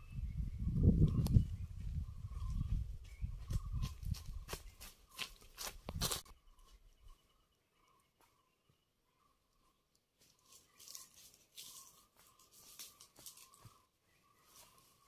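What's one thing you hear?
Footsteps crunch on dry leaves and a dirt path.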